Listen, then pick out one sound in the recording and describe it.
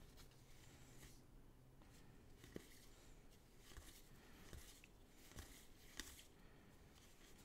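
Trading cards rustle and flick softly as they are shuffled through by hand.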